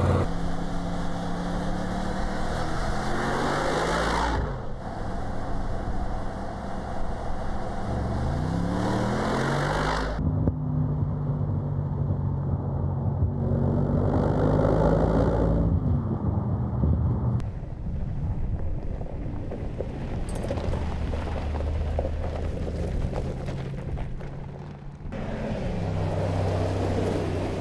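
A powerful car engine rumbles and revs as it drives past.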